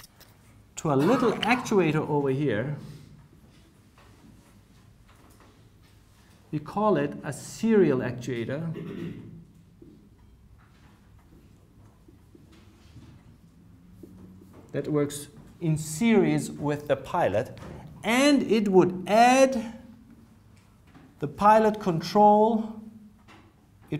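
A man lectures in a calm, clear voice in a room with a slight echo.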